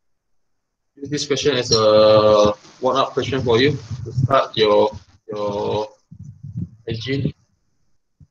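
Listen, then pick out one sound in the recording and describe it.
A young man speaks with animation, heard through an online call.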